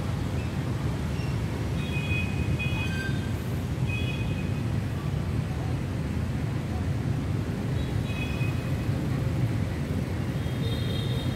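Wind gusts through the trees and rumbles against the microphone outdoors.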